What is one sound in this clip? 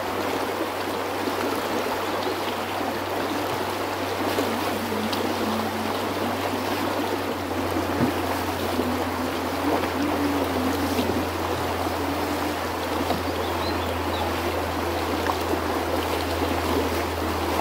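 A man splashes as he wades through the water.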